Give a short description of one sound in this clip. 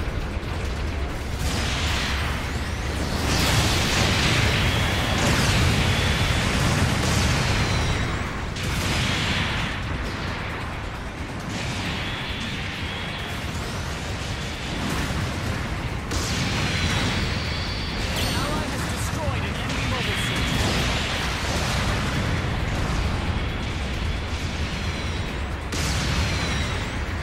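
Thrusters roar in loud bursts.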